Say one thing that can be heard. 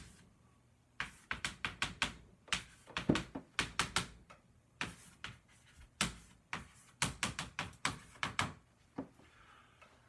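Chalk taps and scrapes on a blackboard in quick bursts.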